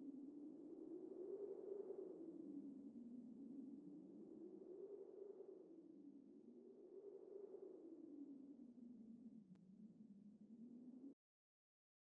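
Soft, slowly swelling menu music plays, then cuts off into silence.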